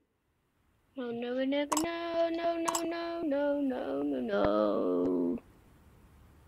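A young boy speaks close to a microphone.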